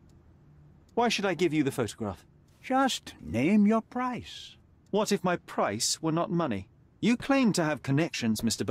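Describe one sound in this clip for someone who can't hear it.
A young man speaks calmly and at length.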